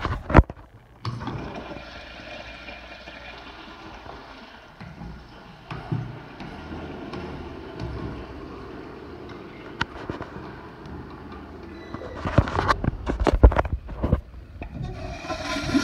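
Water rushes and gurgles as a urinal flushes.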